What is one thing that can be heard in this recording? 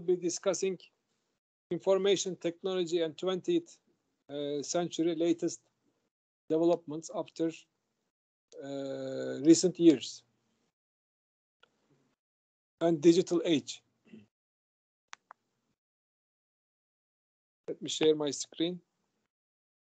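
A middle-aged man speaks calmly in bursts over an online call.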